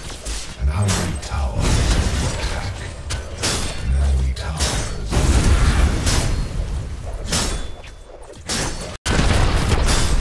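Magic blasts burst and crackle loudly.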